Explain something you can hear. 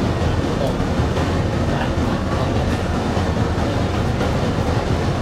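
Fire roars steadily, with soft crackles.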